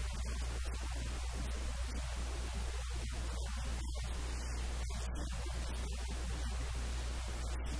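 A middle-aged man speaks calmly into close microphones.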